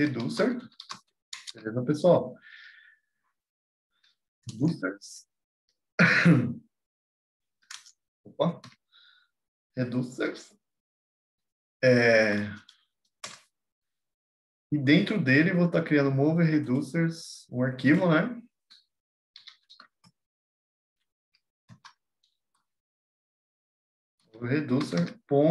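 A man speaks calmly into a close microphone, with pauses.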